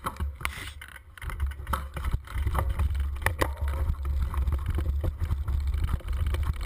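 Tyres bump and crunch over stones and ruts.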